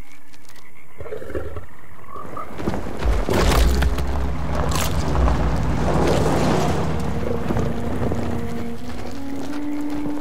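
An old car engine rumbles as it approaches.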